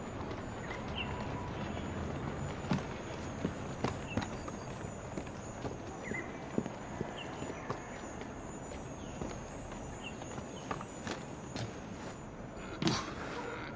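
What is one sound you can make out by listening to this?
Footsteps tap lightly across a roof.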